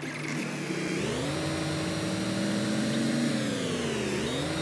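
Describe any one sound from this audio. A truck engine starts up and revs, rising and falling in pitch.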